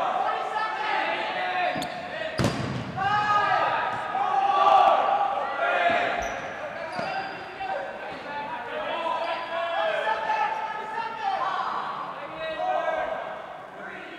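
Young men shout and call out to each other in an echoing gym.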